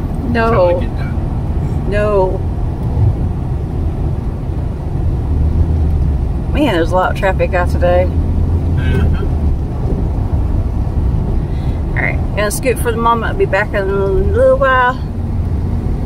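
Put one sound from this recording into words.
A vehicle drives along a road with a steady low rumble from inside.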